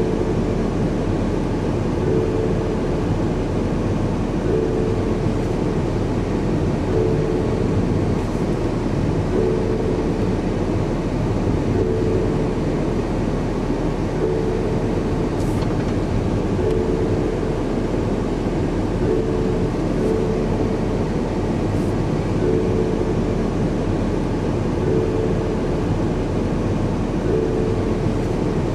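A car engine hums steadily with road noise as the car drives along.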